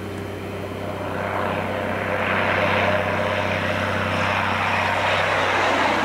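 A truck rumbles toward the listener along a road.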